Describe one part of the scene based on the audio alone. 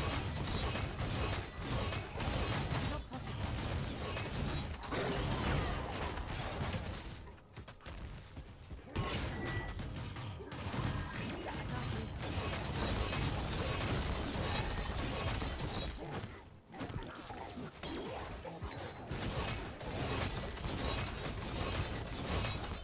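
Spell blasts and hits crash and crackle in quick succession.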